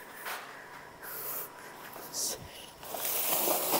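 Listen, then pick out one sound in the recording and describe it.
Dry plant stalks rustle and crackle as a hand pushes through them.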